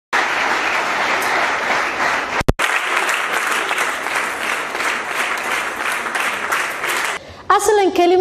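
A large crowd of women murmurs and chatters.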